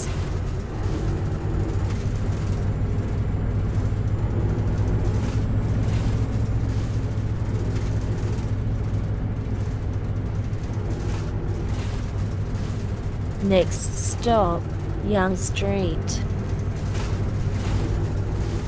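A bus engine hums steadily while driving.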